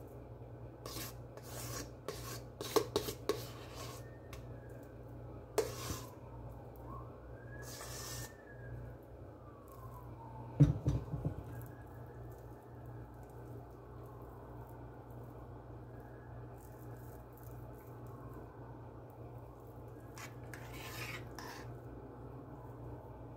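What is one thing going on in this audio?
A metal spoon clinks and taps against a dish.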